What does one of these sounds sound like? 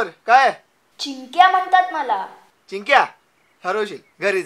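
A boy answers in short phrases close by.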